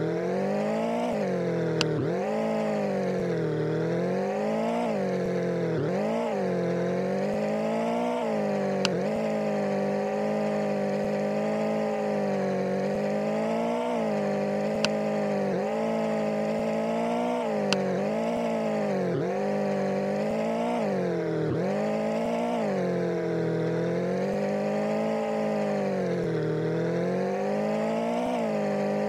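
A car engine hums steadily, revving up and down.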